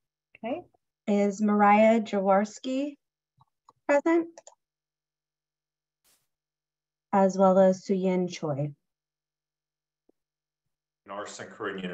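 A middle-aged woman speaks steadily over an online call.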